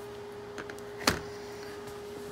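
A heavy block is set down on a wooden bench with a dull knock.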